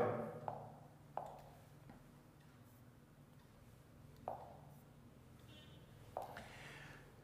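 A fingertip taps lightly on a touchscreen.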